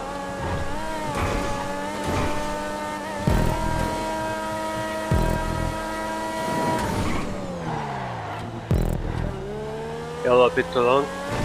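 A race car engine roars loudly, its pitch rising and falling with gear changes.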